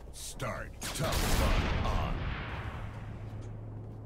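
A loud blast booms and then rumbles away.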